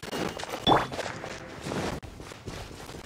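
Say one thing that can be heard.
A shimmering magical chime rings out.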